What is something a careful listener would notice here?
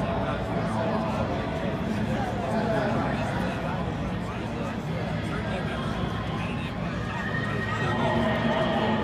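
A crowd of men and women chatter all around outdoors.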